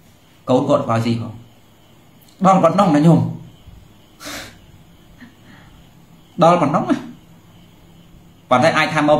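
A man speaks calmly in short bursts, close to a microphone.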